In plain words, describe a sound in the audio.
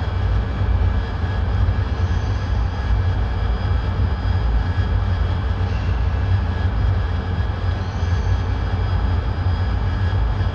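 Wind rushes steadily past the canopy.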